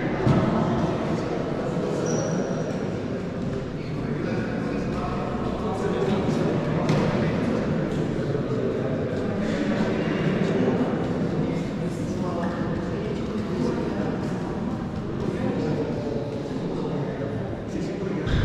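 A group of young men talk and shout together in a large echoing hall.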